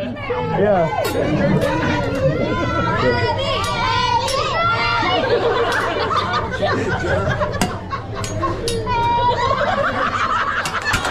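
A group of adults and children laugh and cheer loudly nearby.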